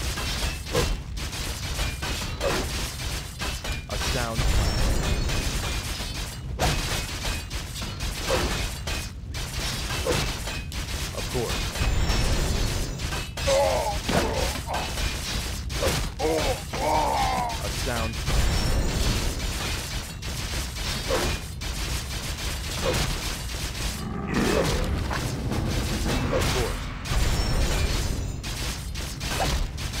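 Swords clash and clang in a game battle.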